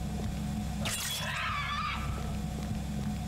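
A creature's body bursts with a wet splatter.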